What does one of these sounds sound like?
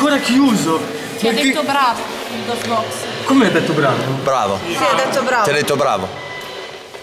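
A young man speaks with excitement close by.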